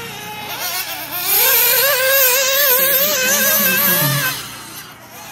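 A small model car's electric motor whines loudly, rising and falling in pitch.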